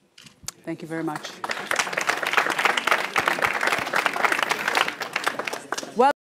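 A woman speaks to an audience through a microphone in a large room.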